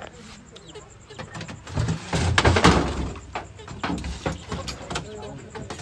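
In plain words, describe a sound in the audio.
A metal box clanks and rattles as it is moved.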